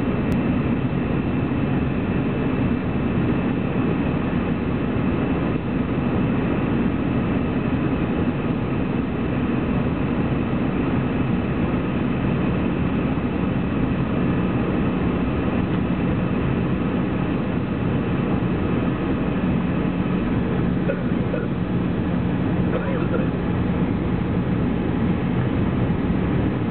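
A jet engine roars steadily from inside an airliner cabin.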